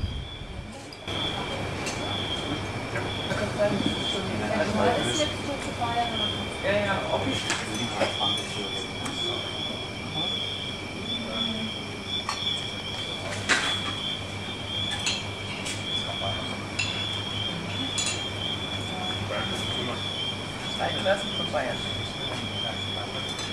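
Diners murmur and chat at tables in a busy room.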